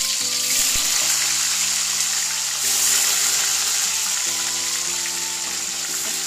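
Hot oil sizzles and crackles steadily as food fries.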